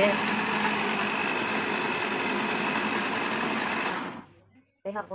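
A blender whirs loudly and then stops.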